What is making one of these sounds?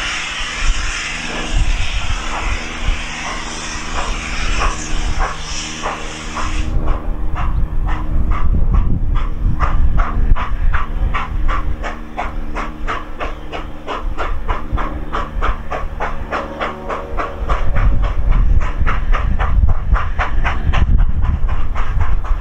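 A steam locomotive chuffs in a steady, quickening rhythm at a distance.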